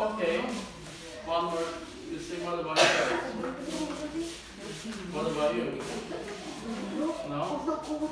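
A man speaks clearly and calmly to a group nearby.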